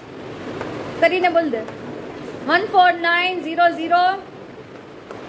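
A young girl speaks calmly nearby.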